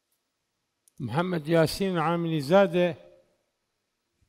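A man speaks clearly through a microphone.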